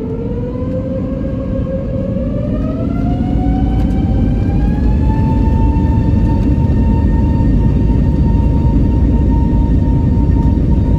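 Tyres rumble over the runway.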